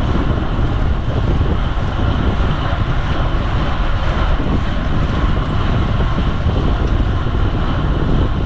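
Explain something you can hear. Bicycle tyres hum on smooth road.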